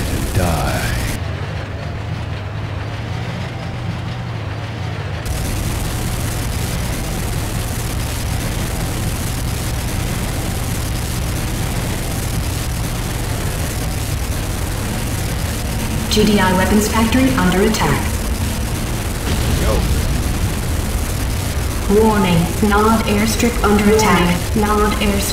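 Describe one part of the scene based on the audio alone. Flamethrowers roar in bursts of fire.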